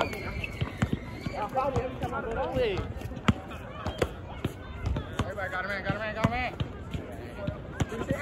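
A basketball bounces on an outdoor court with sharp thuds.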